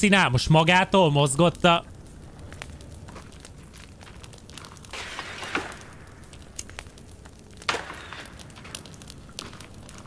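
A torch flame crackles and hisses.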